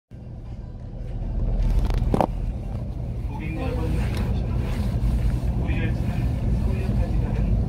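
A train rumbles past along a platform.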